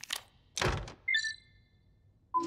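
An electronic panel beeps.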